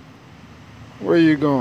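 A small dog barks sharply up close.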